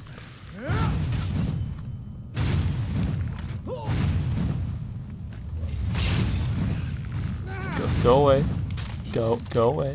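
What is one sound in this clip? Flames roar and whoosh in repeated bursts.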